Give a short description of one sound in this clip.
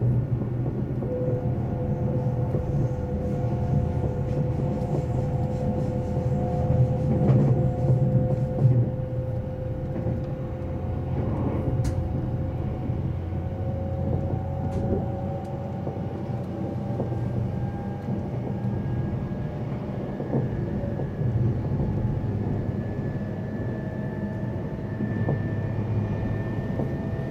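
A train's motor whines with a slowly rising tone.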